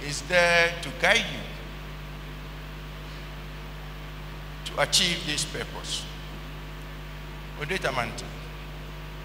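An elderly man speaks slowly and solemnly into a microphone, in bursts with long pauses.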